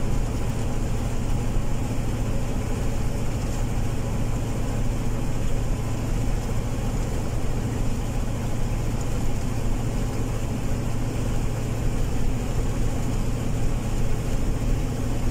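Tyres roll over asphalt with a steady rumble.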